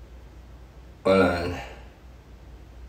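A man briefly exclaims close by.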